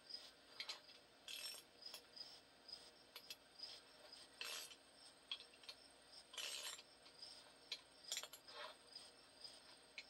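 A metal wrench clicks and scrapes against a bolt.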